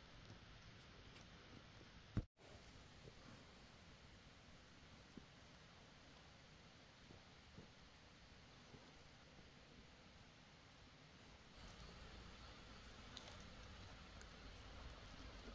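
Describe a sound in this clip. Fingers scrape and press into loose soil close by.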